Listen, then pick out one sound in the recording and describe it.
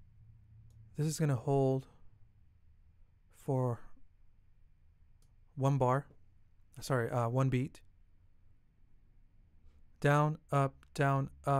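Plucked acoustic guitar notes ring out in short bursts.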